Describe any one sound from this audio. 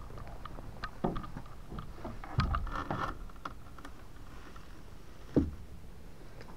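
A car door clicks open and thuds.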